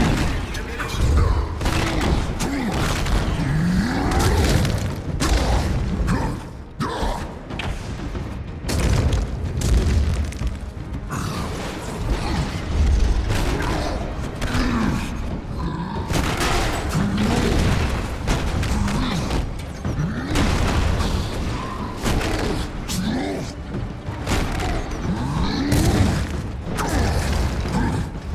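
Heavy punches and smashes thud and crash again and again.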